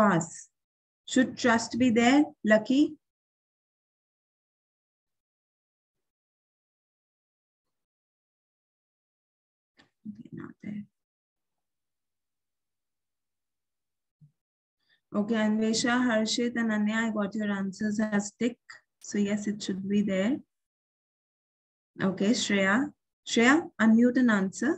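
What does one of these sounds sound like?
A young woman speaks calmly and closely through a microphone, with pauses.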